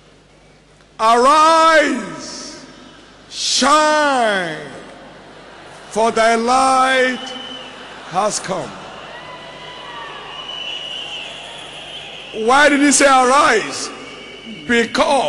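A man preaches loudly and with fervour into a microphone, his voice echoing in a large hall.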